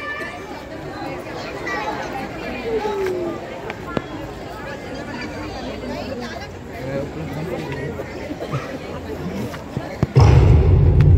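A crowd of children and adults chatters in the open air.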